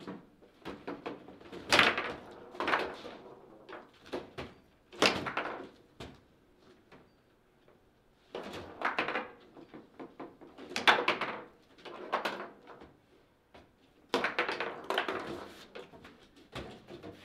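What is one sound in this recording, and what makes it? A table football ball clacks sharply off plastic players and the table walls.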